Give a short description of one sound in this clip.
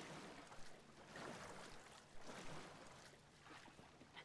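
Water splashes as a swimmer paddles.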